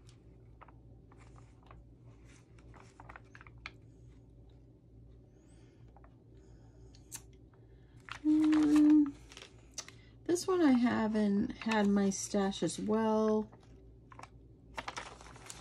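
A plastic sheet crinkles and rustles close by.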